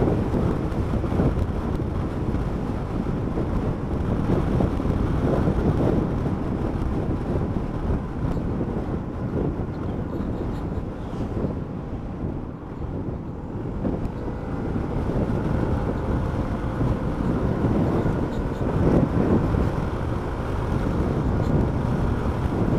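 Wind buffets and roars loudly against a helmet.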